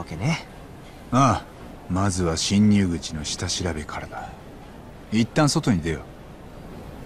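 A second man answers calmly.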